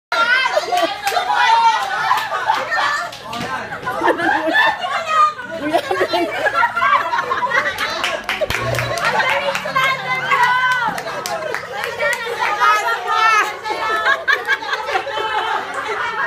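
A crowd of young people laughs and shouts excitedly close by.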